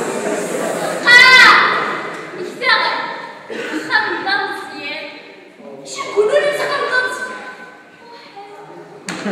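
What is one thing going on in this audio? A young woman speaks with animation in an echoing hall.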